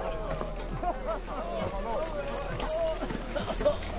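Horses' hooves thud on the ground.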